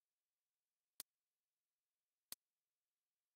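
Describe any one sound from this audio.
Soft menu clicks tick quietly.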